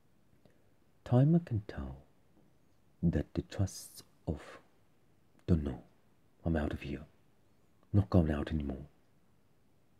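A young man speaks calmly and close by in short phrases.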